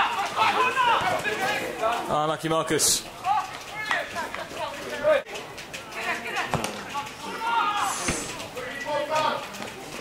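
Nearby men shout and cheer excitedly outdoors.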